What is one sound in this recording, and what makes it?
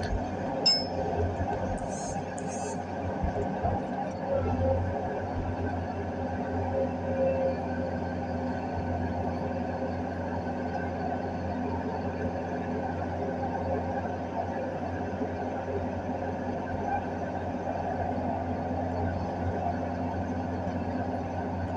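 An excavator's diesel engine rumbles steadily from inside the cab.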